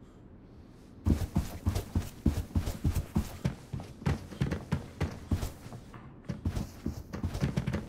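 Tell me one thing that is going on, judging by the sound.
Footsteps thud quickly on a hard floor.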